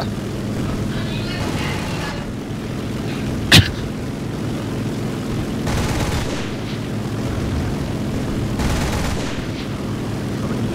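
Aircraft machine guns fire in rapid bursts.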